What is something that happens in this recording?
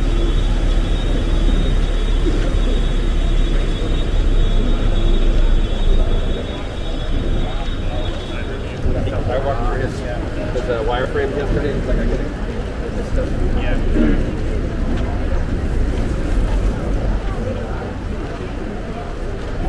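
A crowd of men and women murmurs and chatters outdoors.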